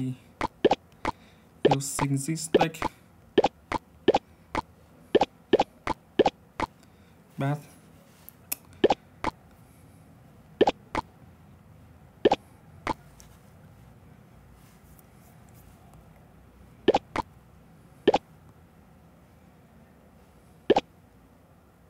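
Short game clicks and taps sound again and again.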